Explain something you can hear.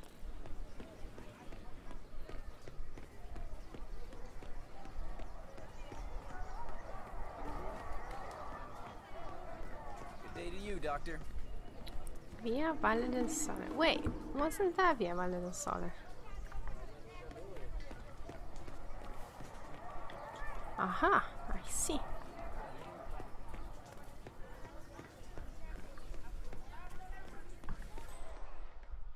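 Footsteps tap on stone paving at a brisk walk.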